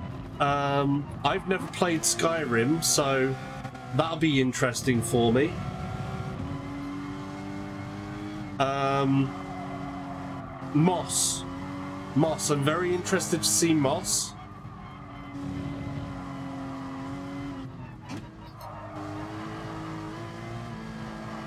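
A racing car engine hums steadily and shifts pitch with speed.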